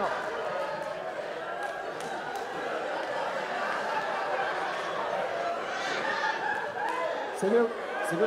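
A crowd chatters and murmurs in a large hall.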